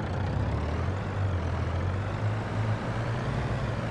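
A large farm machine's engine drones and rises as it pulls away.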